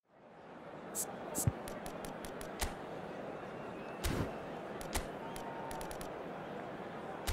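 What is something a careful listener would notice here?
Short sharp menu clicks sound now and then.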